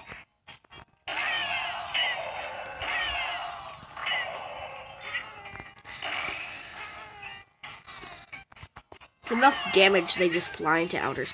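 Cartoonish fighting game hits and blows clatter rapidly.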